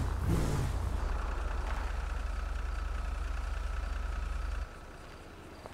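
A truck engine idles low and then cuts off.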